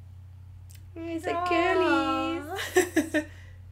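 A woman laughs loudly and exclaims close by.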